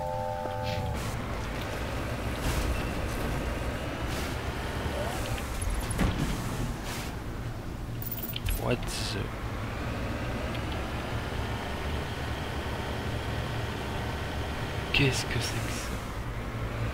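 A vehicle engine hums steadily while driving over rough ground.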